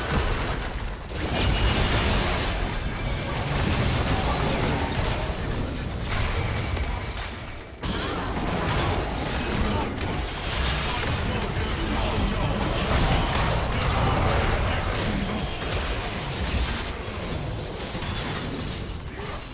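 Game character attacks clash with sharp impacts.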